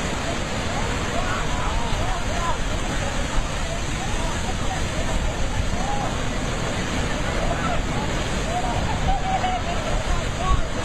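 Rough sea waves crash and roar against rocks.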